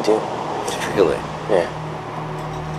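A second man speaks briefly and quietly nearby.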